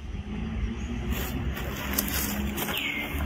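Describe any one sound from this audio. Dry leaves rustle and crackle as a monkey shifts on the ground.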